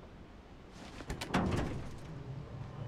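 Metal van doors clank and swing open.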